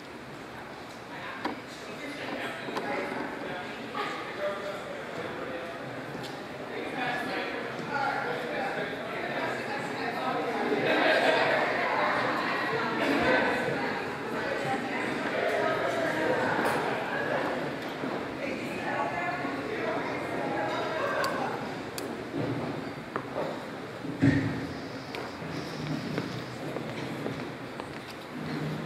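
A crowd of adults chatters and murmurs in a large echoing hall.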